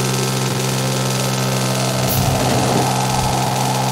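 A train rumbles along a track.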